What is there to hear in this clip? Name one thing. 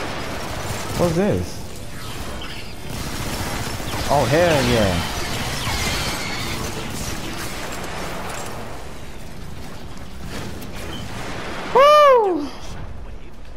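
Robotic bug creatures screech.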